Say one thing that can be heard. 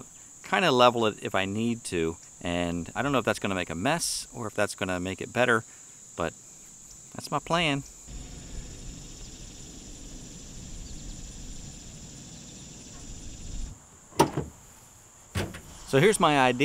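An older man talks calmly and close up.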